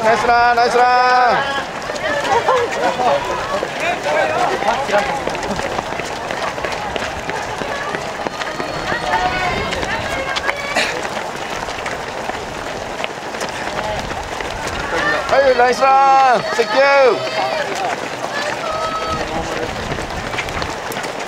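Many running footsteps patter on pavement.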